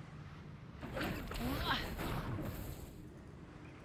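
A small explosion bursts with crackling sparks.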